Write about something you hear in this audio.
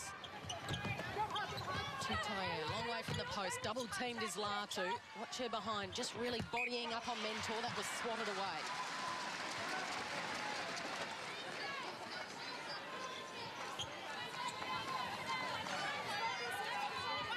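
A large indoor crowd murmurs and cheers in an echoing arena.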